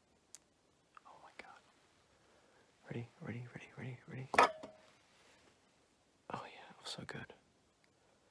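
A man whispers softly very close to a microphone.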